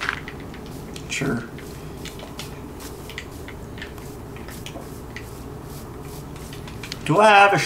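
A young man speaks briefly and casually, close to a microphone.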